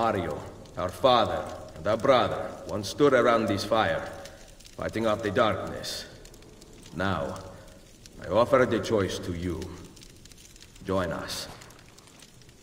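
A man speaks calmly and solemnly, close by.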